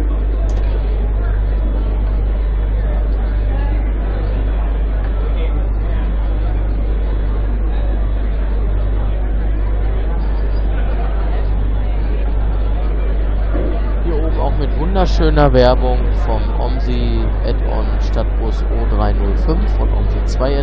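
A bus engine idles with a low steady hum.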